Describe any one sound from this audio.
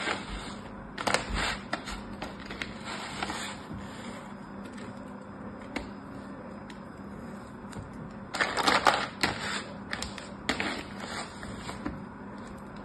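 A plastic mould knocks and taps against a plastic tray.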